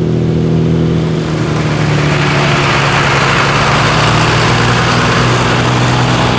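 An old air-cooled car engine putters steadily as the car rolls slowly closer.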